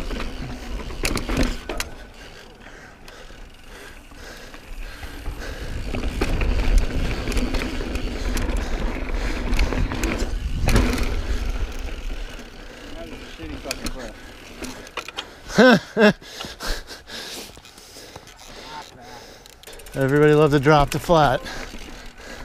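Bicycle tyres roll and crunch over rough rock.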